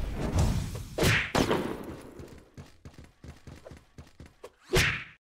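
Laser blasts and explosions burst in quick succession.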